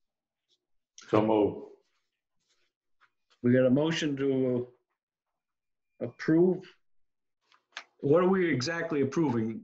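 A middle-aged man speaks calmly over an online call.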